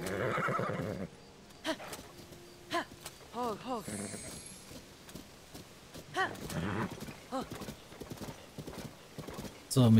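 Horse hooves thud rapidly on grass.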